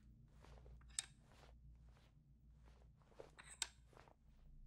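Wooden abacus beads click as they slide.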